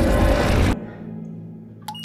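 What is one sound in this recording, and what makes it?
A drop of water drips from a shower head.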